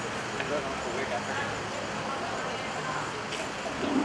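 A car drives slowly past on a street.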